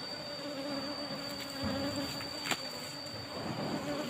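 Bees buzz softly.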